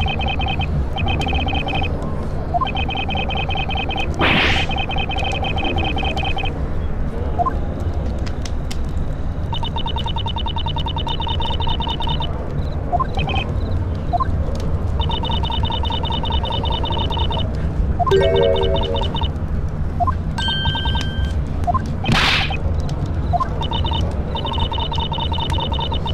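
Rapid electronic beeps chatter in quick bursts.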